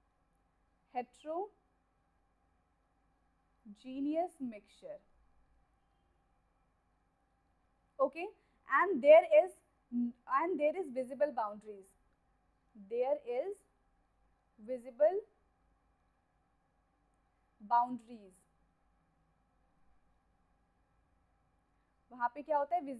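A woman speaks calmly into a close microphone, in short phrases with pauses.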